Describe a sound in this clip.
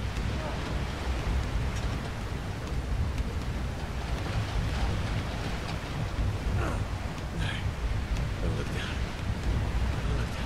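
Stormy waves crash and roar against a ship's hull.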